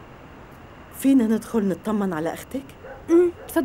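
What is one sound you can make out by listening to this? An elderly woman speaks tearfully nearby.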